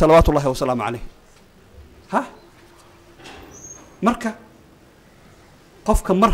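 A middle-aged man speaks forcefully into a microphone, in short bursts with pauses.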